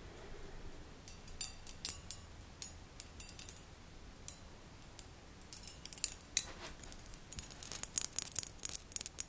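Thin metal wires tick and click lightly.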